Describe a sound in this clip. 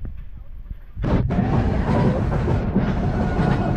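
Wind rushes loudly past as the coaster car picks up speed.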